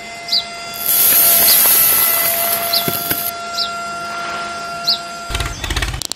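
Sand pours out of a toy trailer and hisses down a chute.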